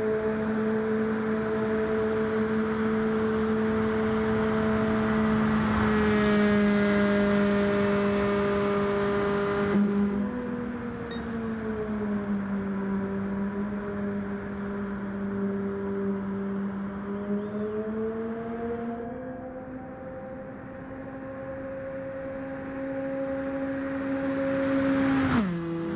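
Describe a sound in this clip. A race car engine drones loudly at high speed, its pitch shifting as it passes and changes speed.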